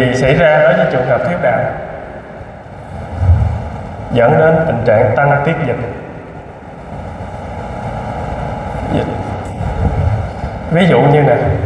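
A man lectures through a loudspeaker in a large echoing hall.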